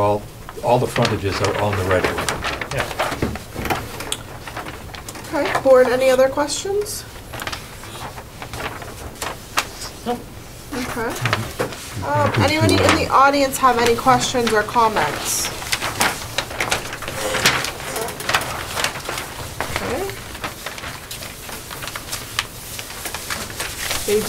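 Adult men and women talk calmly nearby.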